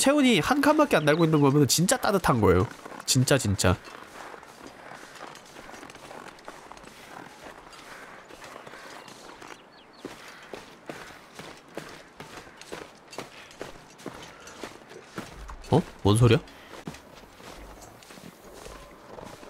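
Footsteps crunch steadily through deep snow.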